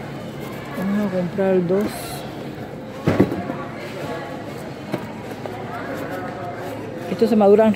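A cardboard box flap rustles and scrapes as it is moved.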